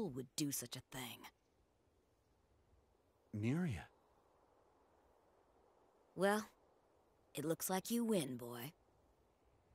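A young woman speaks teasingly, close by.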